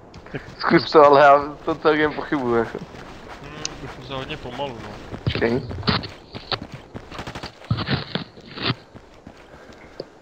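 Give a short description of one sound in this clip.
Footsteps tread steadily over dirt and pavement.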